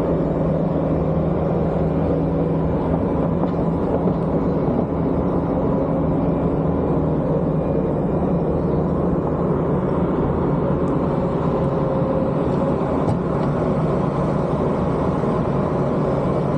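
A small loader's diesel engine rumbles steadily nearby.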